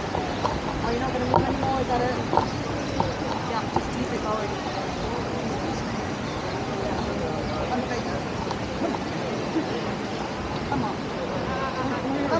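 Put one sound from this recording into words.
Children chatter and call out nearby outdoors.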